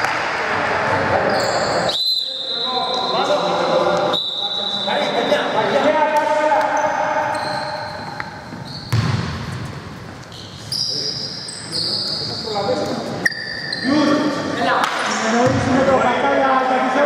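Adult men call out and talk across an echoing hall.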